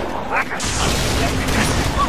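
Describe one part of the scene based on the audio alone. An energy gun fires rapid shots.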